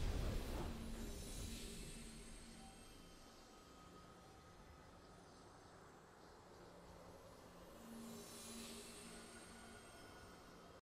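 Triumphant game music plays, swelling and fading.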